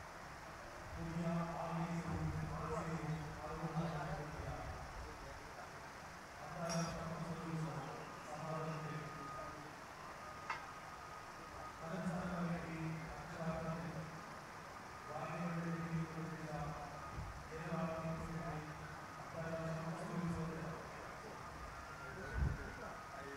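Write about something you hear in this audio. A man speaks calmly over a loudspeaker, with short pauses.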